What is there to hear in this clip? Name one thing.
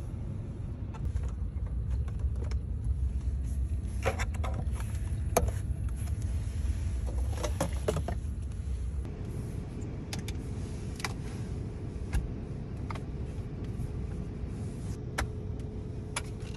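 A plastic compartment lid clicks open and shut.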